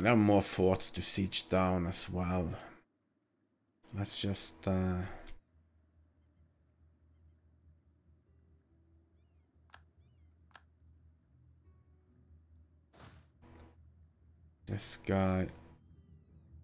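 A young man talks calmly and closely into a microphone.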